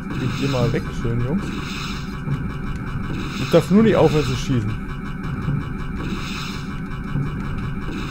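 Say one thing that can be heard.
Laser blasts fire rapidly in a video game.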